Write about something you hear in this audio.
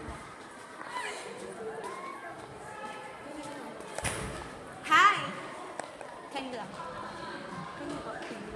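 Young women and a young man chatter and laugh close by.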